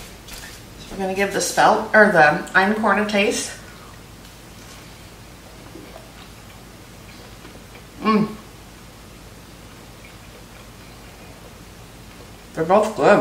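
A middle-aged woman speaks close by, calmly.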